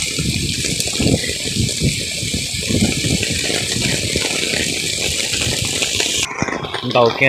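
Footsteps squelch along a wet muddy path.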